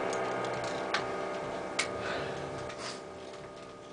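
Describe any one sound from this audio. A few light taps sound on a drum kit.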